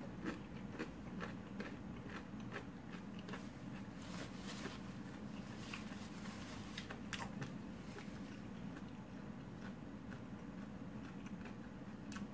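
A woman crunches tortilla chips close to the microphone.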